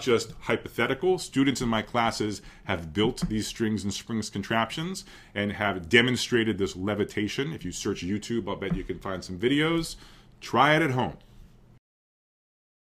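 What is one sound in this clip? A man lectures calmly into a close microphone.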